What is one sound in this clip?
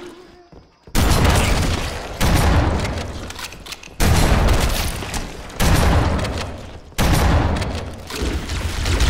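Heavy gunfire blasts in loud bursts.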